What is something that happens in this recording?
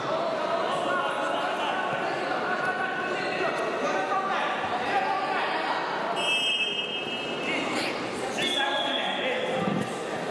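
Wrestlers' bodies scuffle and thud on a mat.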